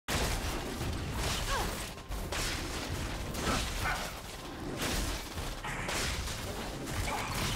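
Fantasy fighters clash with bursts of magic and heavy blows.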